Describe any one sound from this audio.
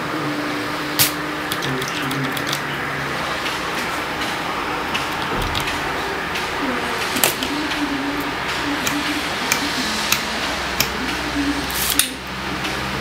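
Buttons on a control panel click sharply now and then.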